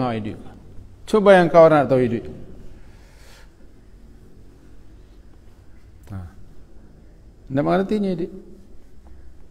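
A middle-aged man speaks slowly and calmly into a close microphone, with long pauses.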